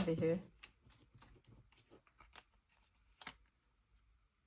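Paper photographs rustle softly as they are handled, close by.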